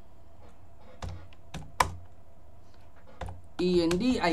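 Computer keys click.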